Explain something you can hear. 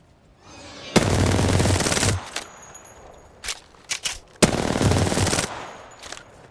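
A machine gun fires in loud rapid bursts.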